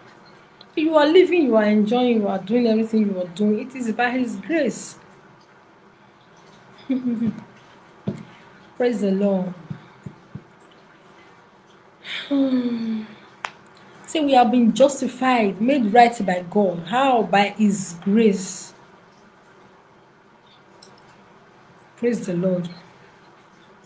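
A woman talks calmly into a nearby microphone, in short bursts with pauses.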